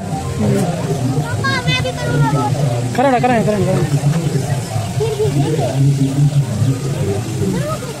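Young boys talk nearby.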